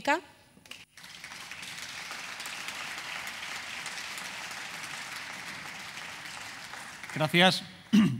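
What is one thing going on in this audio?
People applaud steadily.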